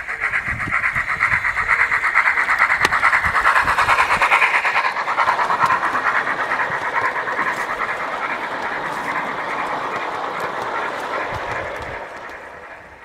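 Wheels of a model train rattle and click over the track as carriages pass close by.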